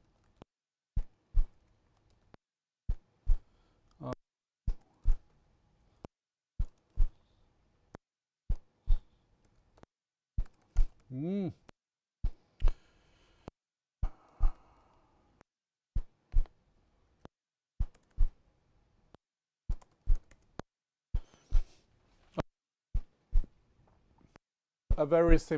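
Keys clatter on a keyboard in quick, uneven bursts.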